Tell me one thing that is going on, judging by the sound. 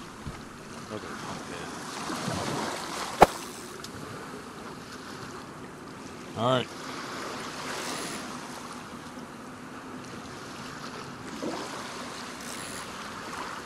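Water laps gently against a wooden pier.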